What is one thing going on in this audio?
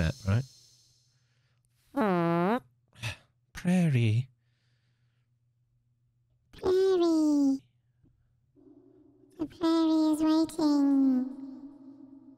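A man speaks expressively into a close microphone, in short bursts with pauses.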